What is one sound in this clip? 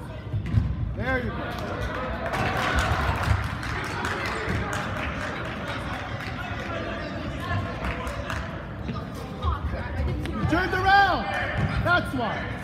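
Sneakers squeak sharply on the hall floor.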